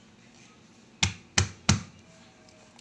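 A knife cuts through a corn cob and knocks on a cutting board.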